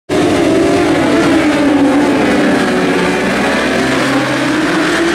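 Racing motorcycle engines roar loudly as they pass close by.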